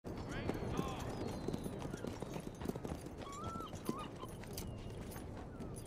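A horse's hooves clop slowly on hard ground.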